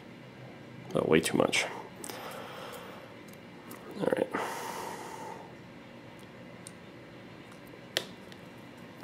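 A small metal tool clicks against the parts of a paintball marker.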